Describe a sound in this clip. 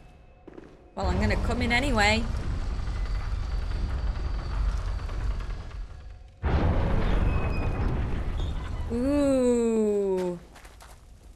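Heavy wooden gates creak and grind open.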